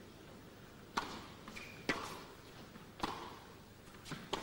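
A tennis ball is struck back and forth with sharp pops of the racket.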